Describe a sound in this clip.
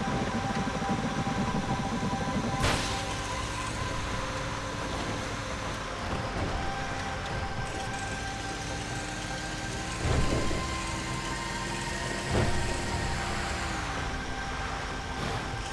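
Truck tyres rumble and bump over a rough road.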